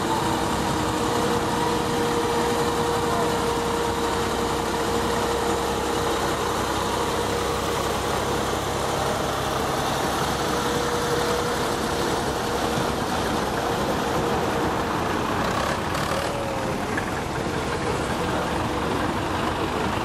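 Old tractor engines chug loudly as they drive past one after another.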